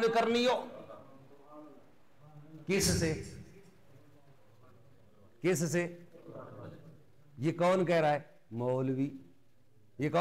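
A middle-aged man speaks with animation into a microphone, in bursts with pauses, his voice echoing slightly in a room.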